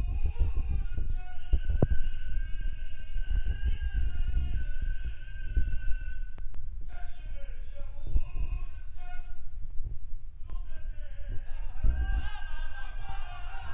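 A man chants in a long, drawn-out melodic voice through a loudspeaker in an echoing hall.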